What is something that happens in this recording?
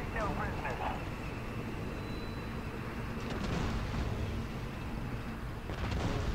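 Tank cannons fire with sharp booming blasts.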